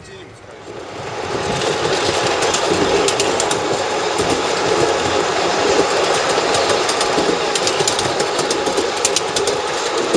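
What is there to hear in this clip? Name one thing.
A small open train rumbles and clatters steadily along its rails.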